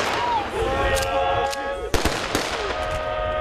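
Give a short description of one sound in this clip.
Rifles fire a volley of shots outdoors.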